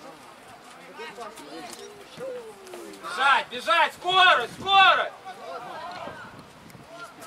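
Young players shout to each other loudly across an open outdoor field.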